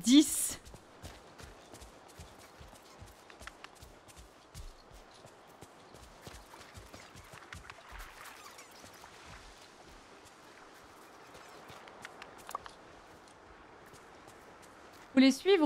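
A young woman speaks briefly and with animation, close to a microphone.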